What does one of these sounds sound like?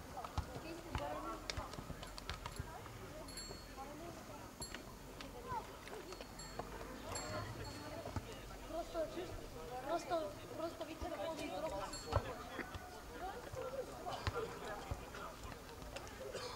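Several men talk calmly nearby outdoors, their voices overlapping.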